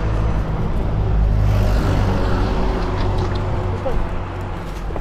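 A van drives past on the street.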